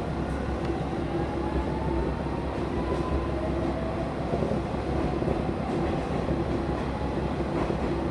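Train motors hum with a faint rising whine.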